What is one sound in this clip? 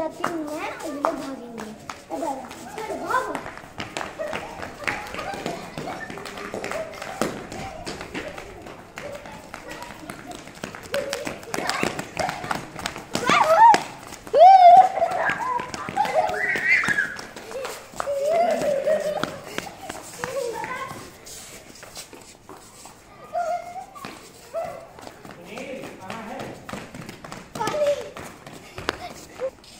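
Young children shout and squeal while playing outdoors.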